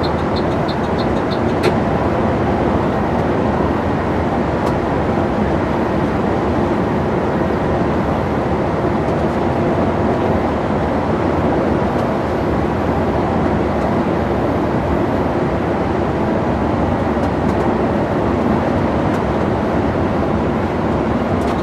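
A large vehicle's engine rumbles steadily from inside the cab.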